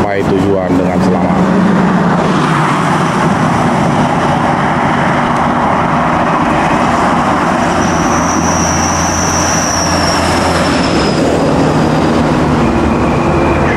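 A bus engine rumbles loudly close by as it drives along the road.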